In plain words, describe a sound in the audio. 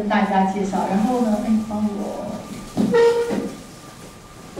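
A woman speaks calmly into a microphone, heard through a loudspeaker in a room.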